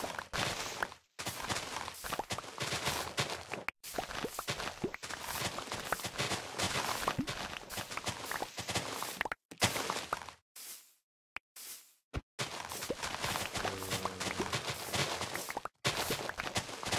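Plant stalks snap and crunch as they are broken, quickly and again and again.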